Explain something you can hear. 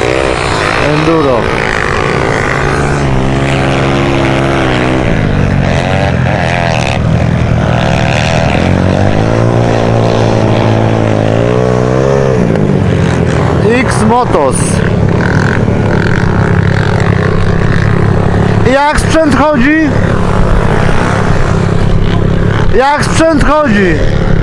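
Other motorbike engines rev and whine nearby.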